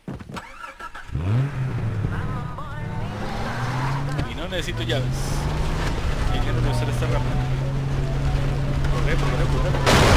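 A car engine starts and runs, revving as the vehicle drives off.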